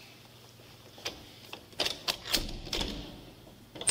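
A metal door latch clicks and clanks.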